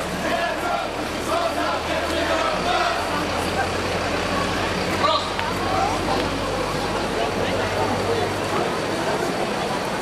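A crowd of people chatters outdoors nearby.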